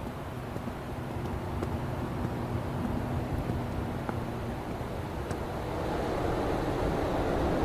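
A truck engine rumbles as traffic passes close by.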